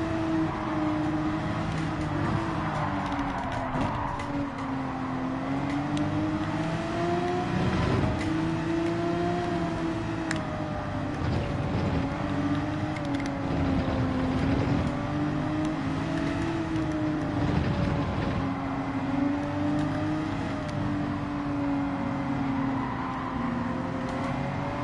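A racing car engine roars steadily, its pitch rising and falling with the gear changes.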